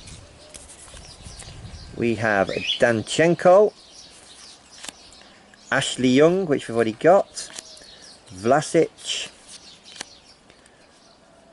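Stiff trading cards rustle and slide against each other in hands.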